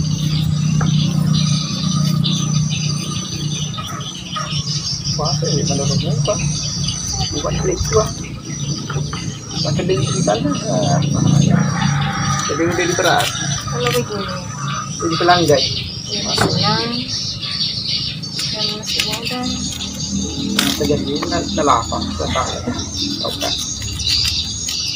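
Knives scrape and slice through vegetables.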